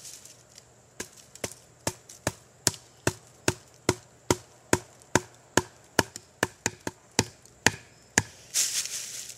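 A mallet knocks repeatedly on a wooden stake.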